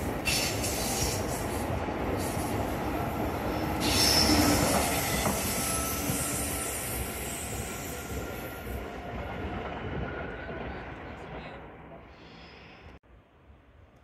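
A high-speed train rushes past close by and fades into the distance.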